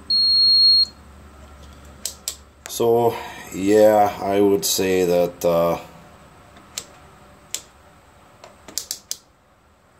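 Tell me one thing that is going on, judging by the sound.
A multimeter's rotary dial clicks as it is turned.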